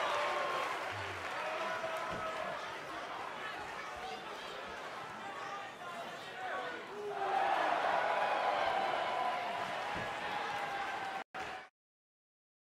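A large crowd cheers and shouts loudly in a big arena.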